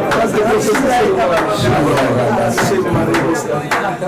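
Men laugh nearby.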